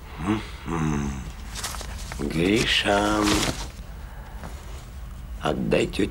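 Papers rustle as a man sorts through them.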